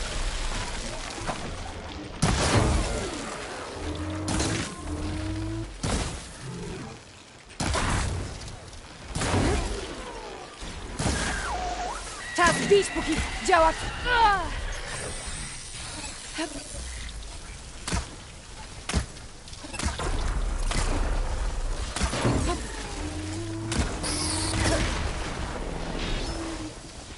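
A large machine creature roars and clanks.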